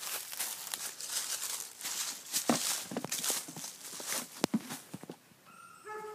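Shoes thud on a wooden plank.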